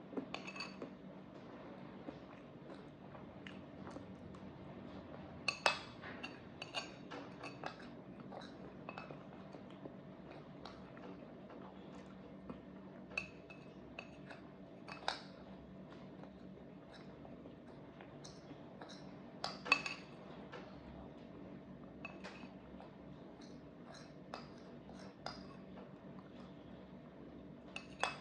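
A young woman chews and smacks her lips close up.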